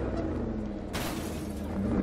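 Footsteps crunch on pavement.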